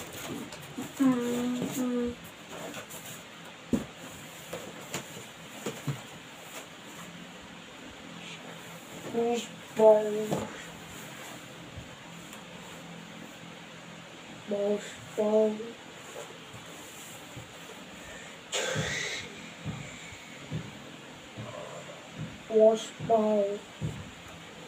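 A boy speaks in short bursts close by.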